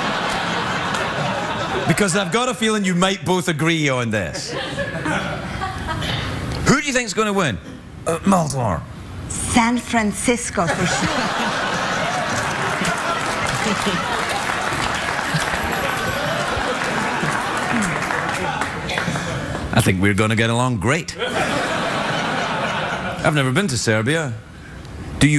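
A studio audience applauds and cheers.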